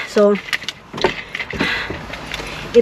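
A plastic bottle crinkles and its cap is screwed on.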